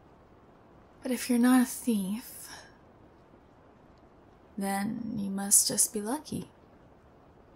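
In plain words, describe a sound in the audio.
A young woman speaks softly and closely into a microphone.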